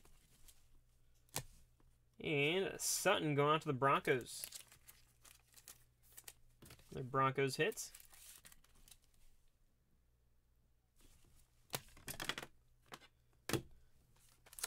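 Hard plastic card cases click and tap against each other.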